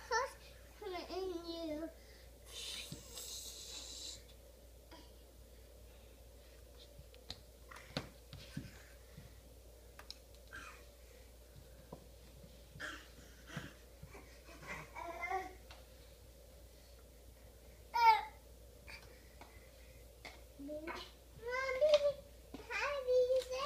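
A young child babbles and squeals close by.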